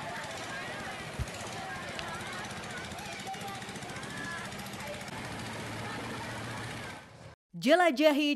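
Water rushes past a boat.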